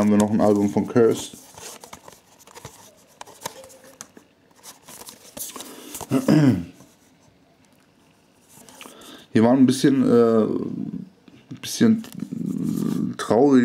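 A plastic case rattles and rustles softly as a hand turns it.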